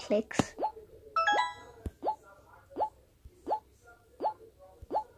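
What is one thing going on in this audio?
A video game plays short rising bleeps in a steady, quick rhythm.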